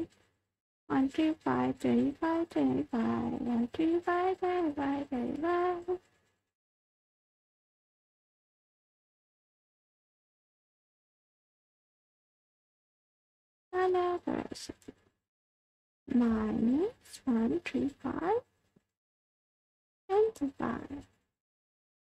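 A young woman speaks with animation, close to a microphone.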